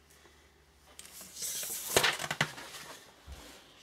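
A sheet of paper rustles as it is moved.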